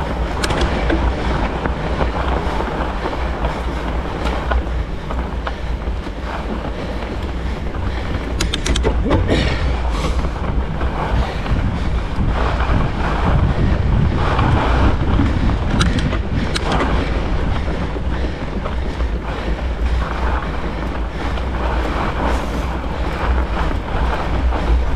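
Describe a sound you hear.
Fat bike tyres crunch over packed snow.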